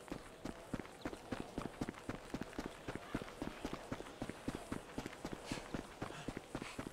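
Footsteps pound quickly on a dirt path.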